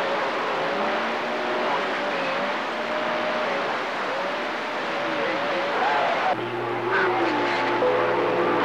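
A radio receiver hisses with loud static.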